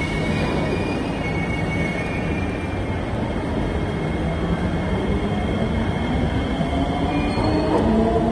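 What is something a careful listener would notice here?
A train pulls into the station with a rising electric whine.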